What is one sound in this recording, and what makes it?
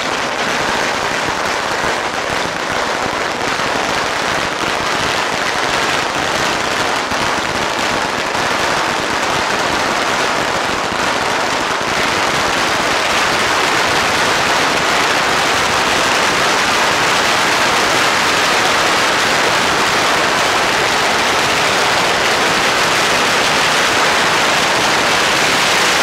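A long string of firecrackers crackles and bangs rapidly nearby.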